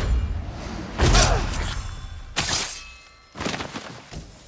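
A sword swishes and strikes.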